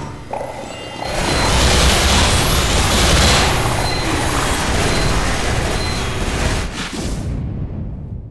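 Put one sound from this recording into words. A flamethrower roars in a loud rushing burst.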